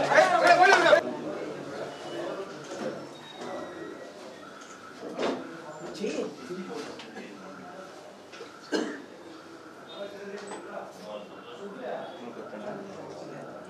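Men murmur and talk quietly in a room.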